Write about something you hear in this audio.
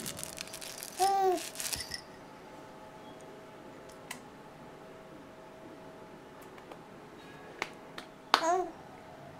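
A baby coos softly.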